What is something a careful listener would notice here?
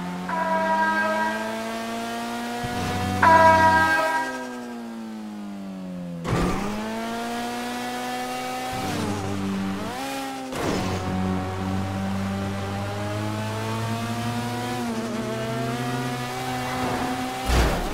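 A car engine revs hard, its pitch climbing and dropping as the car shifts gears.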